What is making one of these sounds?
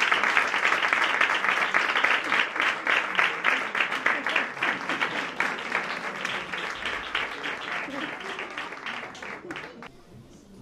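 An audience applauds with steady clapping that slowly fades away.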